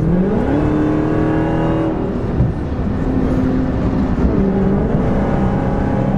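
Tyres roar on a highway.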